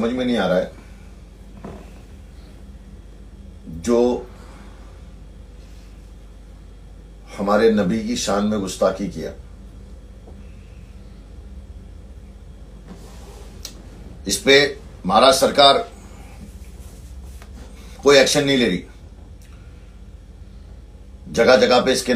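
A man speaks calmly in short bursts close to the microphone, with long pauses.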